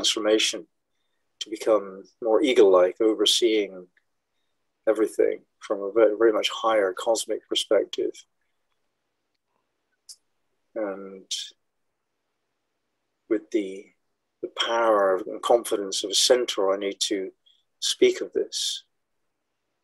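An elderly man speaks calmly and slowly into a microphone, heard as if over an online call.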